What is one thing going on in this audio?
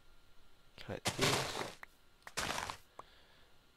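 Plant stalks crunch and snap as they are broken.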